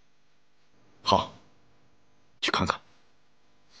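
A second man answers in a low, firm voice.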